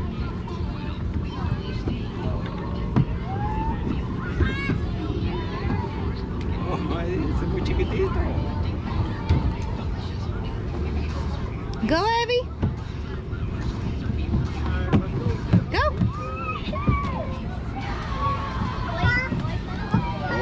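Young children chatter and squeal nearby, outdoors.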